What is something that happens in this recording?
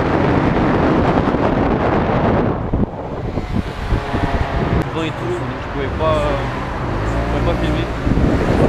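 Wind roars against a microphone on a moving scooter.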